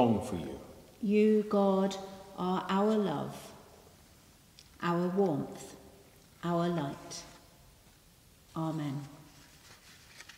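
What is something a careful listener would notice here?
A woman sings slowly in a large echoing hall.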